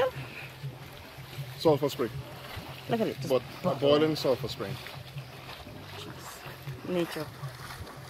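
Water trickles over rocks.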